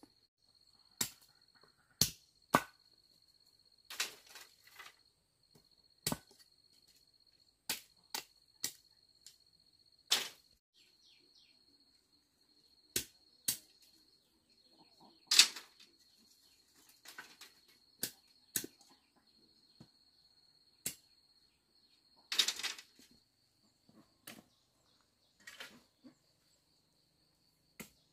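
A blade chops sharply into bamboo with irregular knocks.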